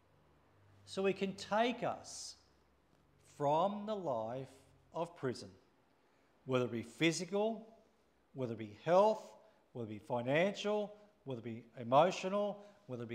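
A middle-aged man speaks calmly into a microphone in a large echoing room.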